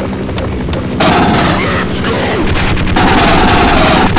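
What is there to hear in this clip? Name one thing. A gun fires rapid shots.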